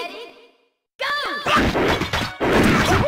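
Fighting game sound effects burst out loudly.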